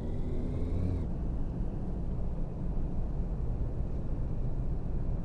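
A car engine hums as the car cruises at moderate speed.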